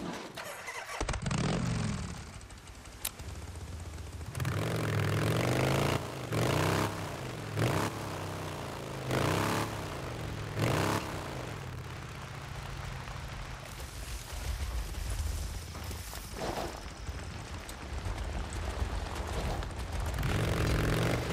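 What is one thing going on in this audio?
A motorcycle engine revs up and down as the bike rides along.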